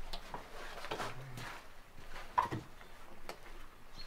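A heavy wooden slab thuds onto a wooden stand.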